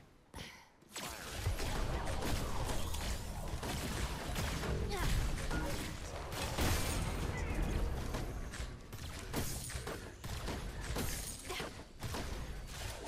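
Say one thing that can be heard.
Video game combat rumbles with blasts and clashing impacts.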